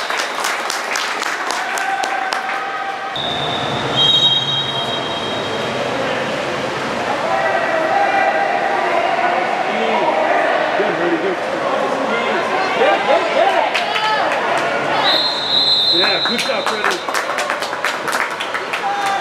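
A crowd of people shouts and cheers in a large echoing hall.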